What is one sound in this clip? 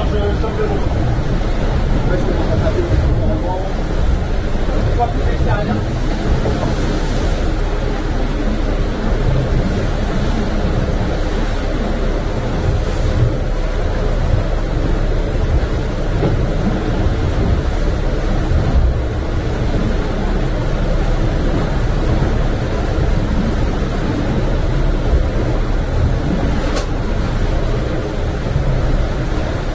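Water rushes and splashes against a fast-moving boat hull.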